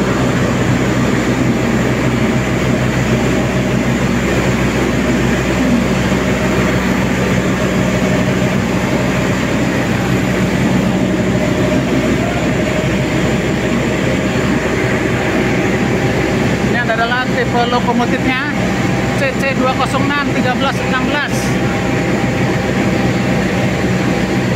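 A train rolls slowly past with a steady rumble in a large echoing station.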